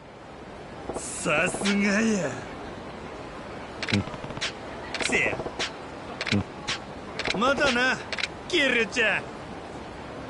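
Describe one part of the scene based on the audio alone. A man shouts and grunts with effort.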